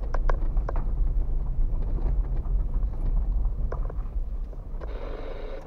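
Tyres roll slowly over rough pavement.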